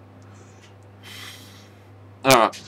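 A woman breathes out smoke with a soft puff.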